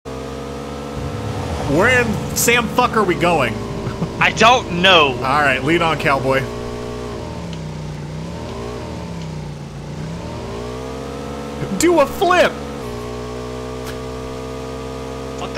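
A motorbike engine hums steadily, dipping and rising in pitch.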